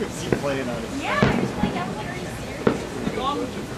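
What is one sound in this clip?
Fireworks boom in the distance.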